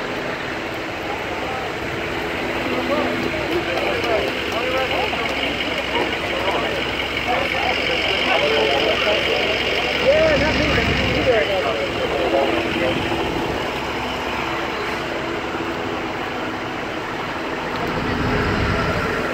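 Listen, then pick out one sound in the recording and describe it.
A crowd of men and women talk outdoors.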